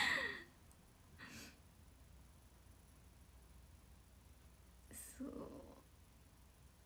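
A young woman giggles softly close by.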